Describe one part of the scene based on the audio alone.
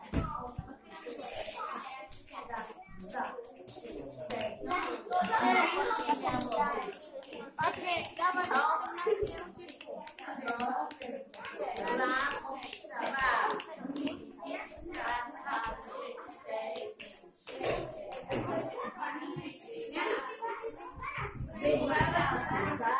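Young children talk and chatter close by.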